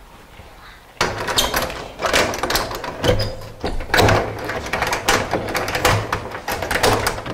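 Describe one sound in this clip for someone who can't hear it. A man knocks loudly on a door.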